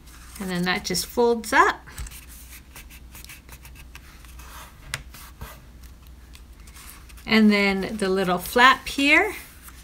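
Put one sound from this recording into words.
Paper rustles and crinkles as it is folded and creased by hand.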